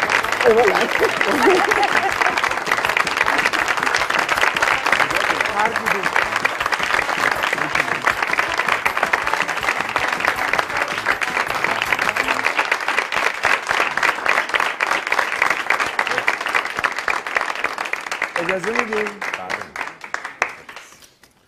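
A studio audience claps steadily and loudly in an echoing hall.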